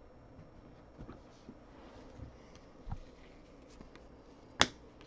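Hands shuffle and tap trading cards.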